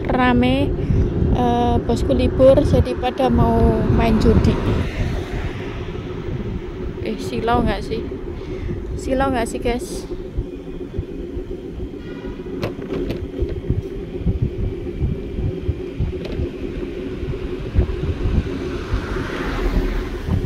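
An electric scooter motor hums steadily.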